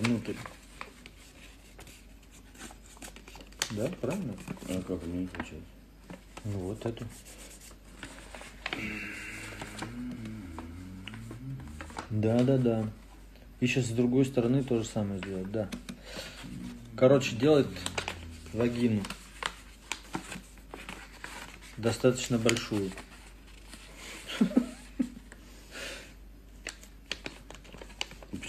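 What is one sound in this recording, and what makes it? Paper rustles as it is folded.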